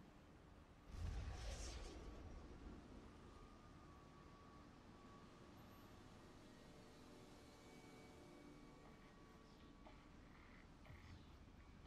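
A loud whoosh of rushing air swells up and then settles into a steady windy rush.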